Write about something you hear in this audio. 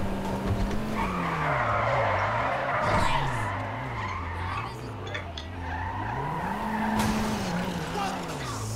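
A car scrapes and bumps against a kerb.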